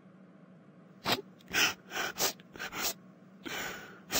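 A young woman sobs and whimpers close by.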